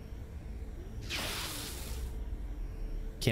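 A laser rifle fires a hissing burst.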